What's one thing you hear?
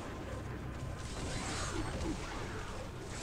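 Weapons clash and strike monsters in a fight.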